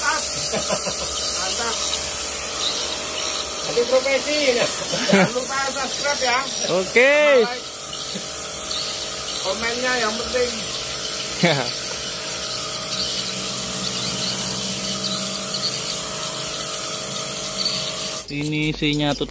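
A pressure washer sprays a loud, steady hissing jet of water.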